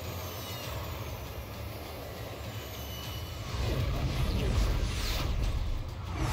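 Jet engines roar steadily overhead.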